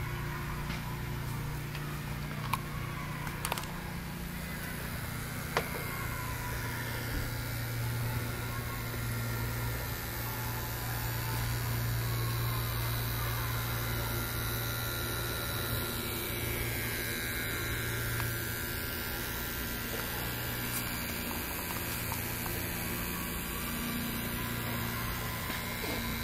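A model locomotive hums steadily.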